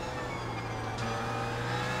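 A racing car engine climbs in pitch again as it accelerates.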